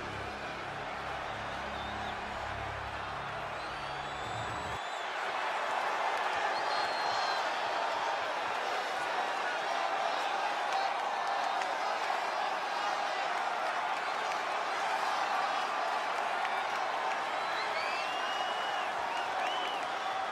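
A large crowd cheers and roars loudly in a big arena.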